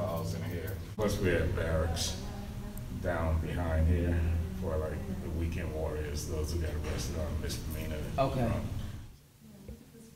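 A man speaks slowly and calmly, close by.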